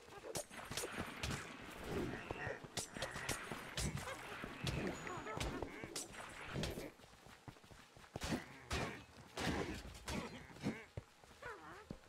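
Weapons strike monsters with sharp, quick hits.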